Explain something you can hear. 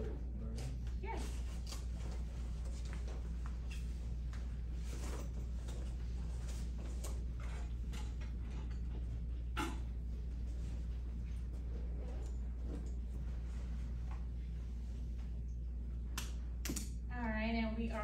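A woman speaks calmly to a room, a little way off.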